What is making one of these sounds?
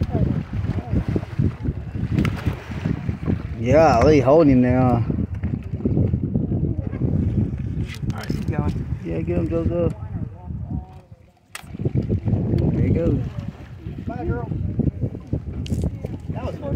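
A hooked shark thrashes and splashes at the water's surface.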